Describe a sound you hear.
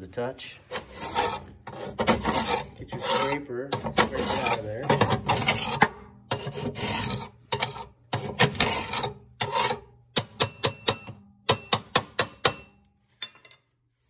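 A metal scraper scrapes and knocks against metal, raking loose grit.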